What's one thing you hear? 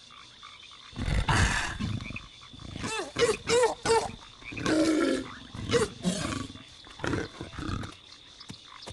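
A creature growls and roars in bursts.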